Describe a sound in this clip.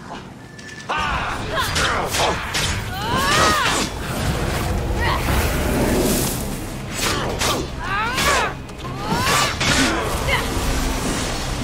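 Swords swish and strike in a fast fight.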